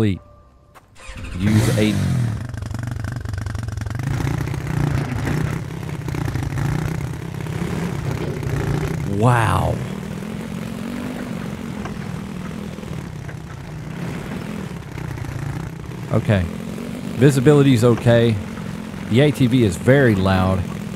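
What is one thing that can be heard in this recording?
A quad bike engine drones steadily.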